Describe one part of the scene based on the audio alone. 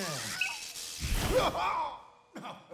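A heavy metal object crashes onto a hard floor.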